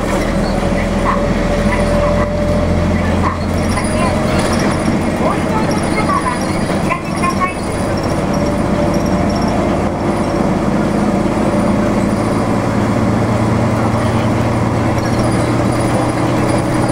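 A vehicle engine hums and road noise rumbles steadily from inside a moving car.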